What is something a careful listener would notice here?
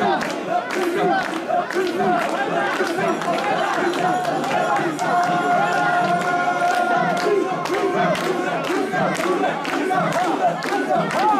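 A large crowd of men chants loudly in rhythm outdoors.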